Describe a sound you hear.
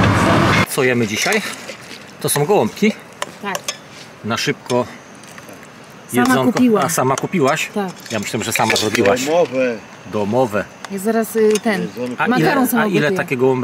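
A metal spoon scrapes and clinks in a pot.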